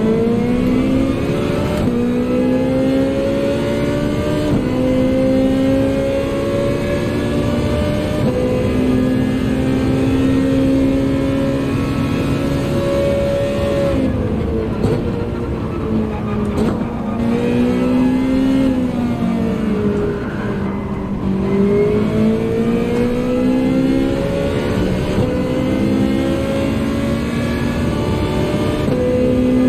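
A racing car engine roars, rising and falling in pitch as the gears shift.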